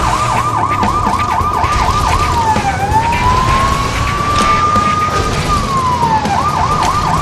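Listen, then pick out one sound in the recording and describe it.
A police siren wails steadily, switching between a fast yelp and a slow wail.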